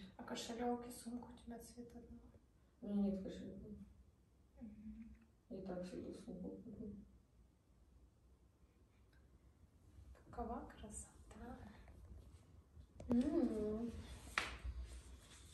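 Young women talk quietly and close by.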